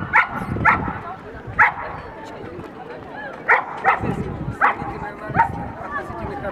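A dog barks sharply nearby.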